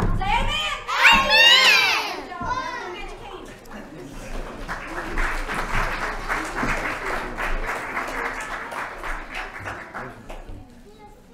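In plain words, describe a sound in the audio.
Children sing together in a large room.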